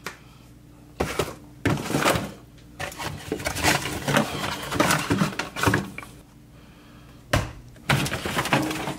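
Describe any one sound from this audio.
Plastic food containers rustle and clatter as they are moved about.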